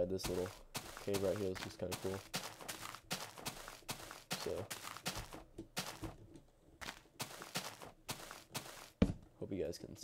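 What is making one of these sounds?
Footsteps crunch on grass at a steady walking pace.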